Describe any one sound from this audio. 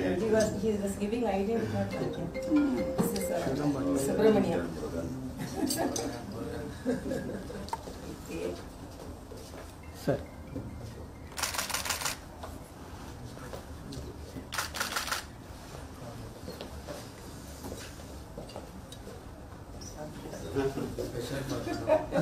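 Several men and women talk and murmur nearby.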